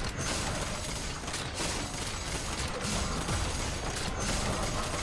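Game characters clash with swords and magic blasts in a fight.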